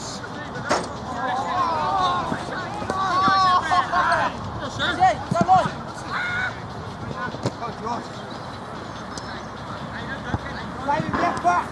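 Men shout and call out to each other outdoors.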